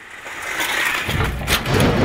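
Metal starting gates clatter and bang open.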